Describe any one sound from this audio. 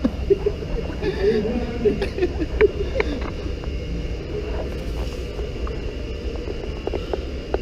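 An escalator rumbles and hums steadily close by.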